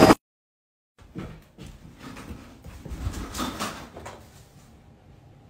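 A cat's paws patter and thump quickly across a wooden floor.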